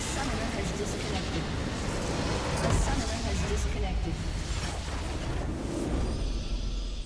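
A loud explosion booms and crackles.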